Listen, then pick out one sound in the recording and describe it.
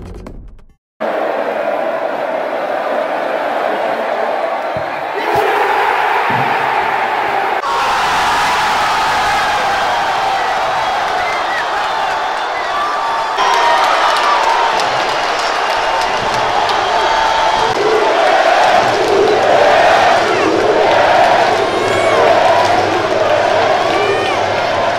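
A large stadium crowd roars and cheers in an open, echoing space.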